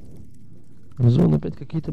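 Dry twigs and branches rustle as a hand pushes through them.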